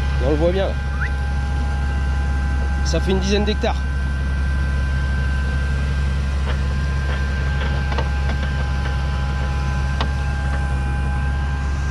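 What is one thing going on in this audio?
A plough scrapes and rumbles through stony soil.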